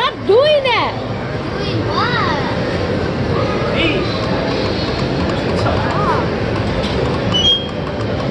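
A steady clatter and hum of a busy arcade fills the background.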